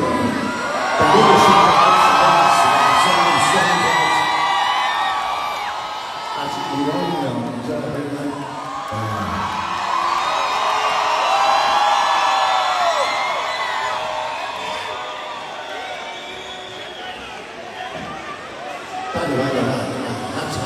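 An elderly man sings into a microphone over loud speakers in a large hall.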